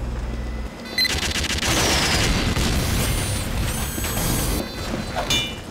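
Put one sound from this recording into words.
A machine gun turret fires rapid bursts.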